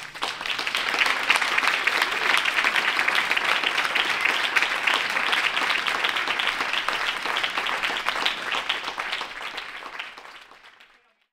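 An audience claps and applauds in a large hall, then fades out.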